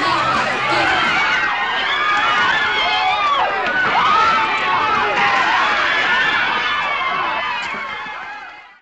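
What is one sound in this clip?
A crowd of young men and women shouts and cheers excitedly nearby.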